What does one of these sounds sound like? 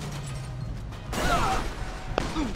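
A car crashes into another car with a metallic bang.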